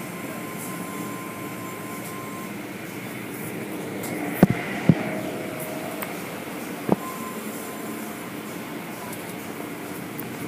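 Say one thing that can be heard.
Water sprays and splashes against a car.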